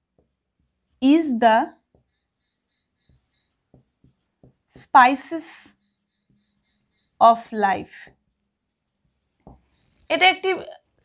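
A woman speaks slowly and clearly nearby, saying words one at a time with pauses.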